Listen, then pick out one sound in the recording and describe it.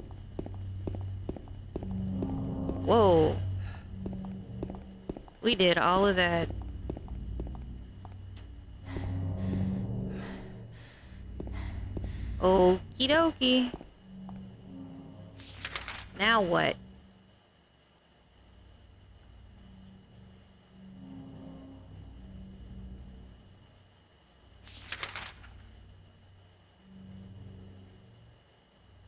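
A young woman talks and exclaims with animation into a close microphone.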